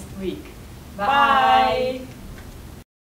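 Young women call out together loudly and cheerfully.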